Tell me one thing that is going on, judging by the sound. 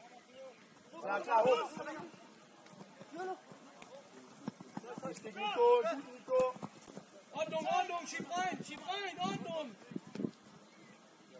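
Young men shout to each other across an open playing field.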